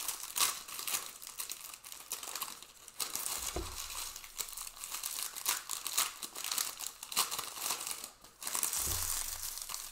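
Foil card packs crinkle and rustle as hands handle them.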